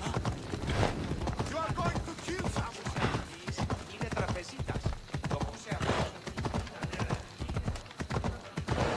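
Horse hooves clop quickly on stone.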